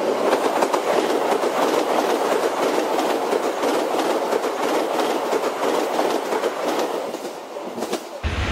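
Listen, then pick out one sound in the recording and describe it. A toy train rattles along plastic track.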